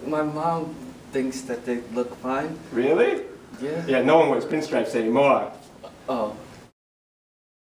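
A second man answers nearby.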